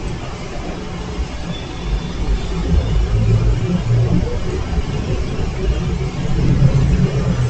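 A tennis ball bounces on a grass court.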